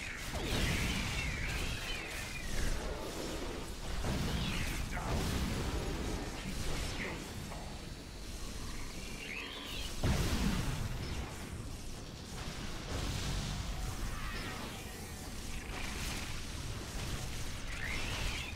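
High whooshing effects sweep up and down in pitch.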